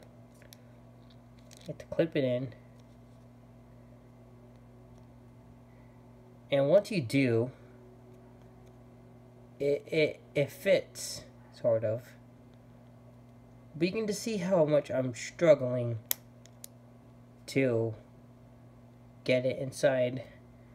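Small plastic parts click as they are pressed together by hand.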